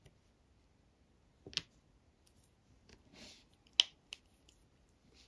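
Small plastic beads click softly as they are pressed into place.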